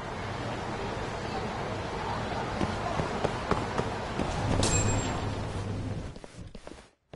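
Footsteps hurry across pavement.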